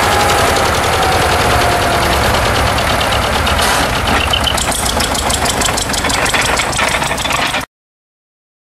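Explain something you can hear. An old tractor engine chugs loudly and rhythmically close by.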